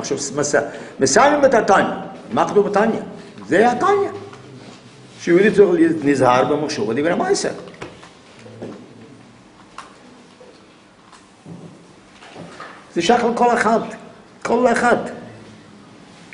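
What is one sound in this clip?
An elderly man speaks calmly and slowly nearby, with pauses.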